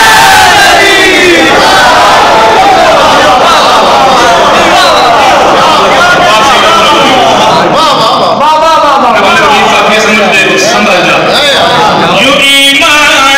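A crowd of men chants loudly together in an echoing hall.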